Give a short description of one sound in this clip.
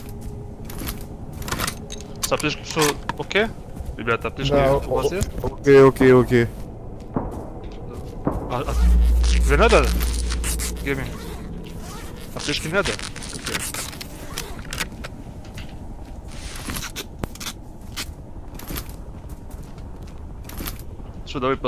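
Footsteps crunch quickly on the ground.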